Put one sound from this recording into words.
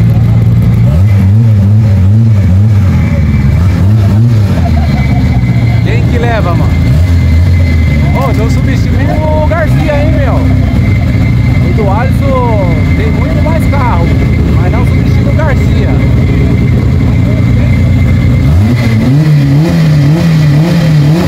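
A race car engine revs up in sharp bursts.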